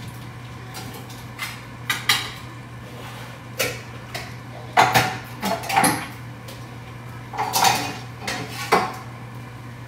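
Dishes clink and clatter as they are moved on a shelf.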